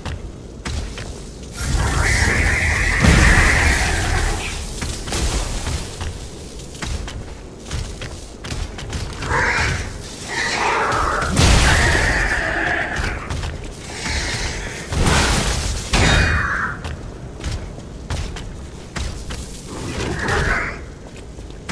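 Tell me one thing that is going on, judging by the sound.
Blades clash and strike metal.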